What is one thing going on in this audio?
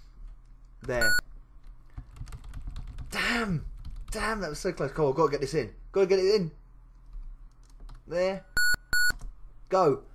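A computer game gives short electronic beeps.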